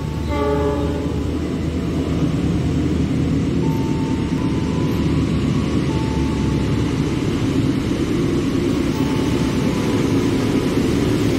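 A train rumbles steadily as it approaches along the tracks.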